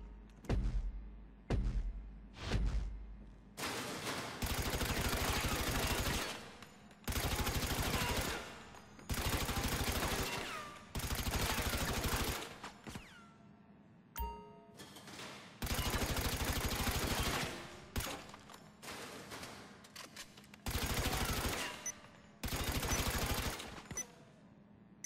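A rifle fires single shots and then rapid automatic bursts in an echoing range.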